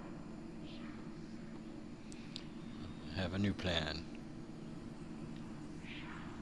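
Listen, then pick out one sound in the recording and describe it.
Magical energy hums and crackles steadily.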